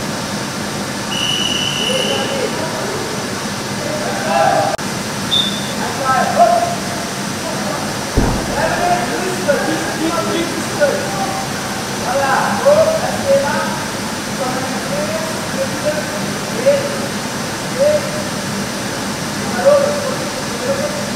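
Young riders shout and call to each other in a large echoing hall.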